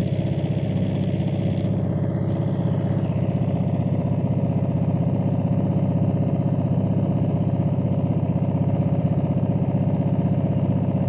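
A boat engine chugs steadily close by.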